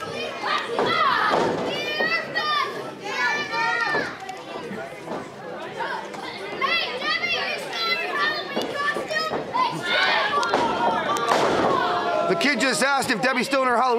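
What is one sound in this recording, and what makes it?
Wrestlers thud onto a ring mat.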